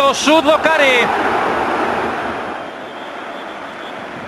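A stadium crowd roars and then fades.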